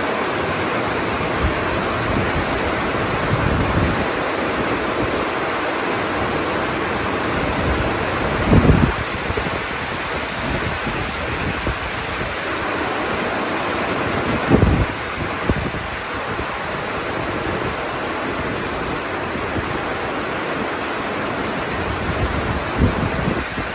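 Wind gusts blow through a tree.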